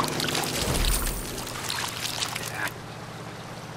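A fish splashes and thrashes in water.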